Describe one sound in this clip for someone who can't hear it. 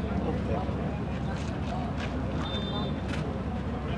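A man talks on a phone nearby.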